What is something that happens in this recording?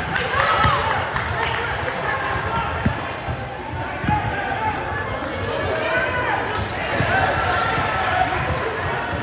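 A basketball thuds as it bounces on the floor.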